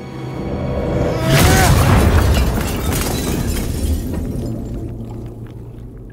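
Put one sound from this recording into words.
A deep rumbling blast roars out and slowly dies away.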